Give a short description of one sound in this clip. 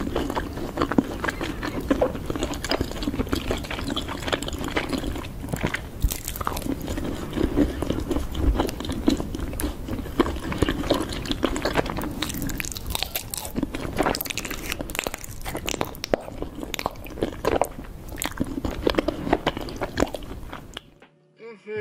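A woman chews and munches loudly, close to a microphone.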